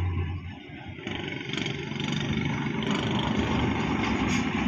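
A motorbike engine rumbles past nearby.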